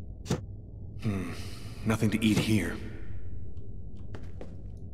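A young man speaks in a low, calm voice.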